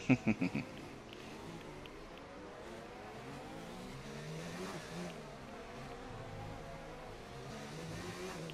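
A racing car engine whines at high revs, rising and falling as the car shifts gears.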